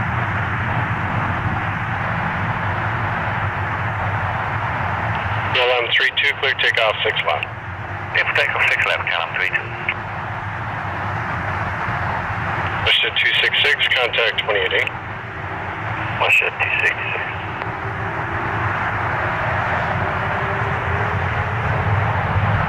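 A three-engine widebody jet airliner taxis past outdoors, its engines rumbling and whining.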